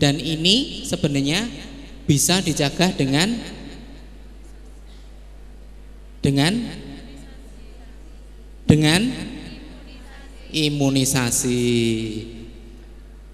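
A man speaks with animation through a microphone over loudspeakers, with pauses between phrases.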